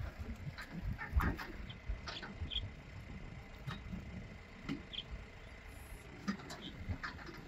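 A pickup truck's engine rumbles low as it drives slowly.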